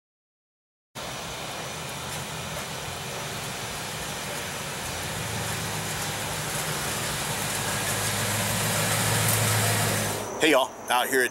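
A car engine rumbles as the car rolls slowly closer.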